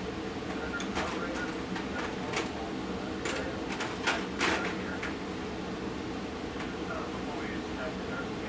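A television plays quietly in the background.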